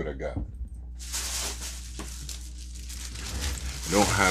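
A plastic bag rustles and crinkles.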